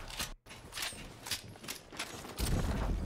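A gun fires a burst of sharp shots.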